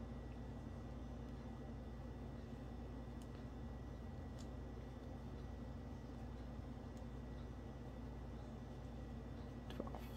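Metal knitting needles click and tap softly against each other.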